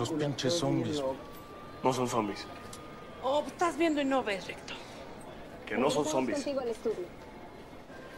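Adult men and women talk over one another with excitement, close by.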